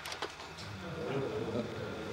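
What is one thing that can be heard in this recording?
A crowd murmurs softly.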